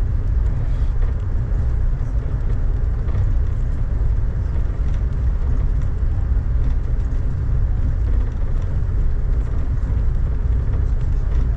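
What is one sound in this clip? A moving vehicle rumbles steadily and low.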